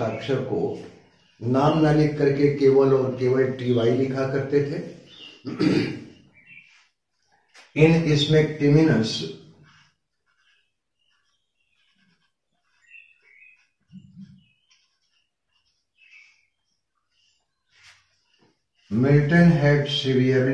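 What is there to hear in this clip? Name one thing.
An elderly man lectures calmly and clearly, close by.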